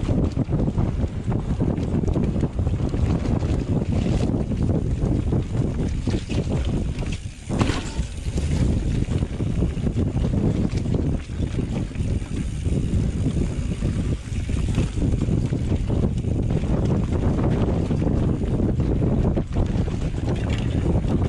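Bike tyres roll and crunch over a rough dirt trail.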